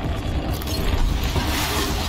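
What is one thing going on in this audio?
An explosion bursts.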